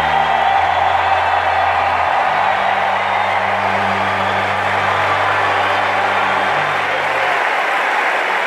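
Low sustained notes of music play over the loudspeakers.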